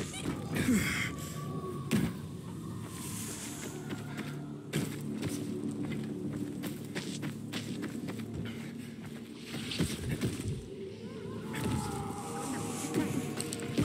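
Footsteps thud and rustle through grass.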